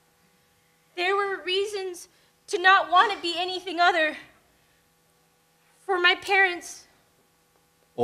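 A young woman speaks with feeling into a microphone.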